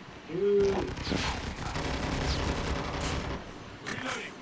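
Gunshots rattle in rapid bursts.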